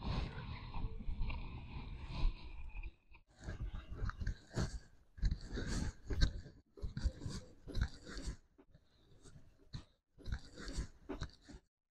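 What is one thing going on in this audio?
Footsteps tap softly on the ground.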